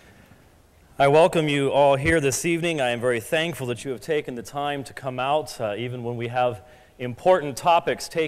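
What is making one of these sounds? An older man speaks calmly into a microphone in an echoing hall.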